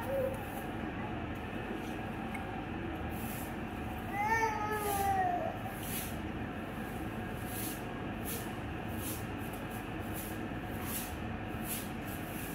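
Fingers rustle softly through hair close by.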